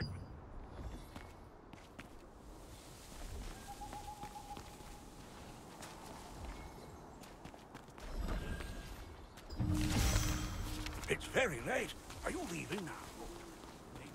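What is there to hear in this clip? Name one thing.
Footsteps patter on cobblestones.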